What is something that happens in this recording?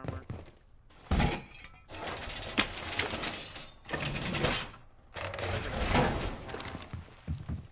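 A heavy metal panel scrapes and clanks into place.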